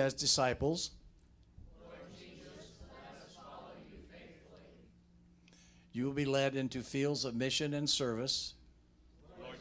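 A man speaks through a microphone in a calm, reading voice, echoing slightly in a hall.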